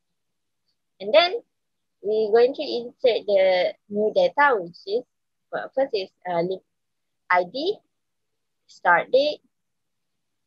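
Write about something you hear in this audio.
A young woman speaks calmly close to a microphone, as if over an online call.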